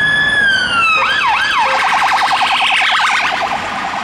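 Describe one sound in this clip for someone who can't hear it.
A police car's yelping siren warbles rapidly up close.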